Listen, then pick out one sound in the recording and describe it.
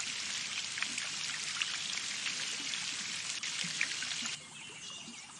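Water splashes steadily from a watering can.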